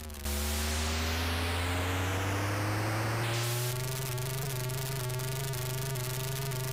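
A retro game engine buzzes and rises in pitch.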